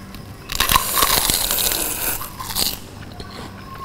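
Chopsticks and a spoon clink against a bowl.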